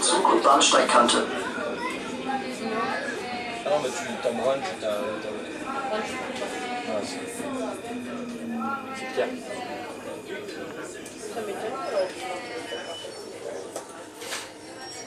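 A tram rumbles steadily along its tracks.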